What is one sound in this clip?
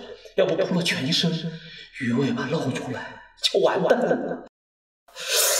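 A man speaks in a strained, tearful voice close by.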